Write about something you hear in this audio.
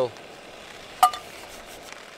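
A frying pan is set down with a clank on a camping stove.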